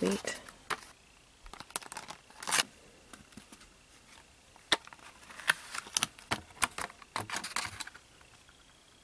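A plastic tray clicks and taps as it is handled.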